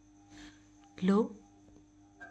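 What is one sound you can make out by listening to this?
A parrot gives a short, loud squawk close by.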